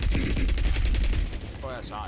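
A rifle fires a loud shot.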